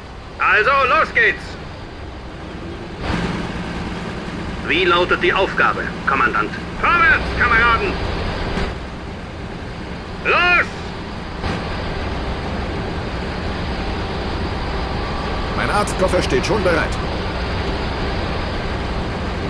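Tank engines rumble low and steadily.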